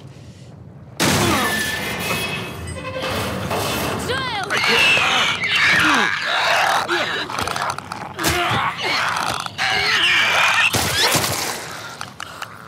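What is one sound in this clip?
A monster shrieks and gurgles up close.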